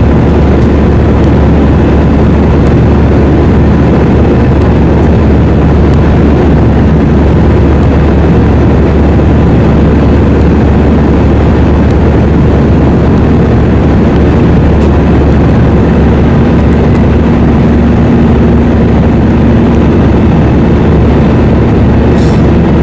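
Jet engines roar loudly in a steady, deep drone inside an airliner cabin.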